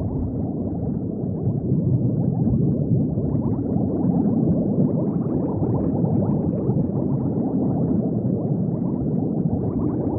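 Bubbles gurgle and burble steadily underwater.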